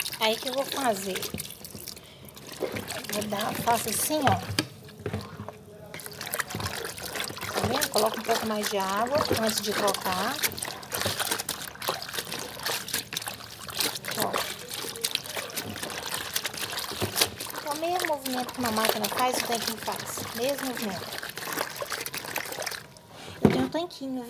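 Water sloshes and splashes as cloth is scrubbed by hand in a basin.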